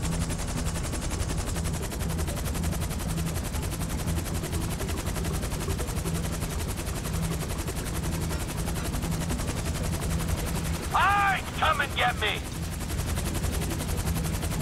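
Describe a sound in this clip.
Water churns and sprays below a hovering helicopter.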